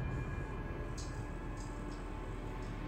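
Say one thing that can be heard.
A small glass ornament rolls and clicks across a hard tile floor.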